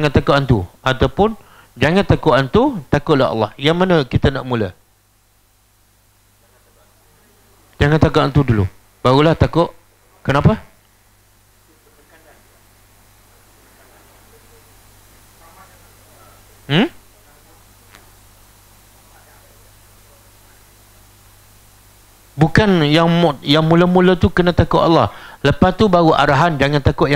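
A middle-aged man lectures through a clip-on microphone, pausing at times.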